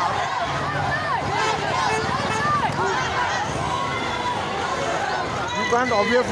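A large crowd of children and adults chatters and cheers loudly outdoors.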